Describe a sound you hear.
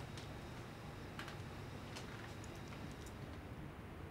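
Footsteps creak softly across a wooden floor.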